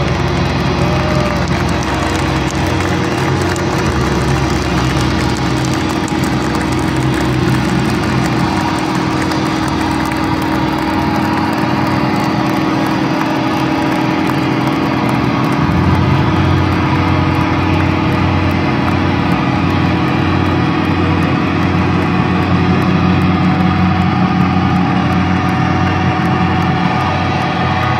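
A heavy rock band plays loudly through huge loudspeakers, heard from within a large outdoor crowd.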